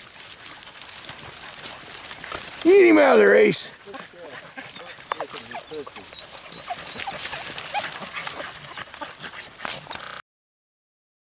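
Dogs rustle through dry brush and twigs.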